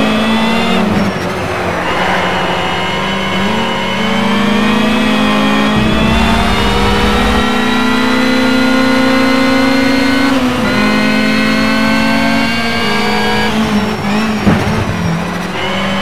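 A racing car engine roars loudly, its pitch rising through the gears and dropping as it shifts.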